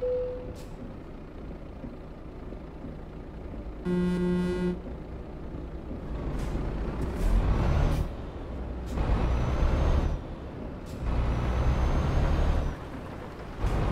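A truck engine rumbles and grows louder as it speeds up.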